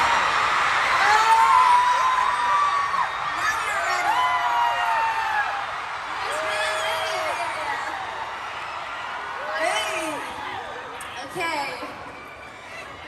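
Young women sing over loudspeakers.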